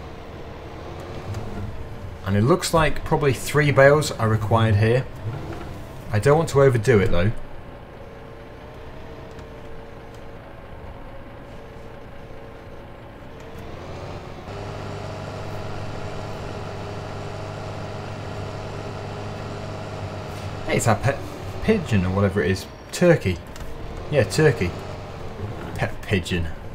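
A tractor engine hums steadily, growing louder as the tractor drives off.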